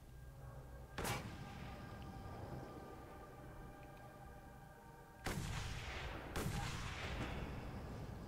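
Loud rifle shots crack and echo away.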